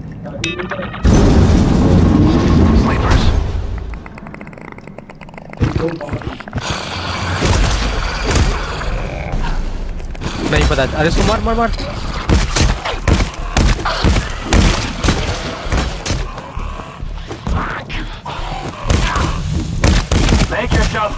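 A heavy rotary gun fires in loud rapid bursts.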